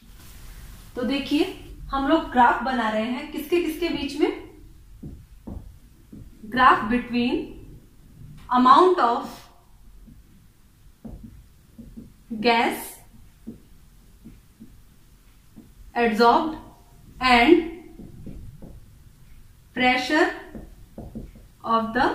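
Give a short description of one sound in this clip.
A young woman speaks calmly and clearly nearby, in short phrases.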